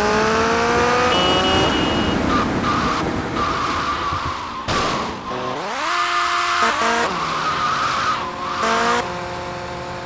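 A motorcycle engine revs as the bike is ridden.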